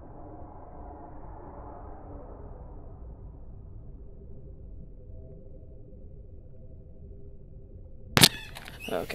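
A small engine hums steadily, muffled as if underwater.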